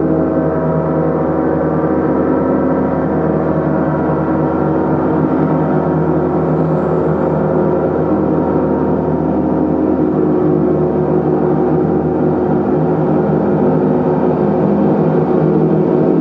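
A large gong rumbles and shimmers in a steady, swelling drone.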